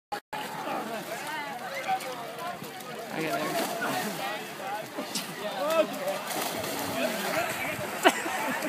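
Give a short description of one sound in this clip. Mud squelches as people crawl over a mud mound.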